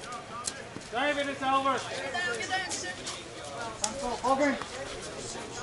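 Men shout and call out to each other across an open field.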